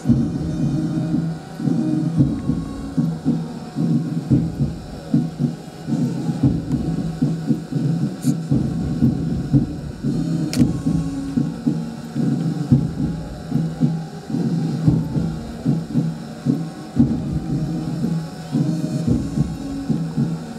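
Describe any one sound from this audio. Boots stamp in step as a squad marches.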